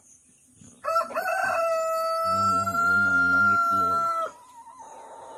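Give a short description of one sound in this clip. A hen squawks loudly up close.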